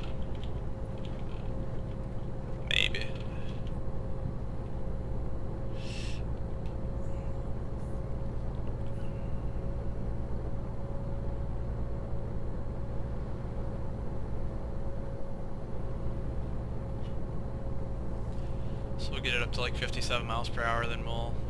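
A truck engine hums steadily as the truck drives along a highway.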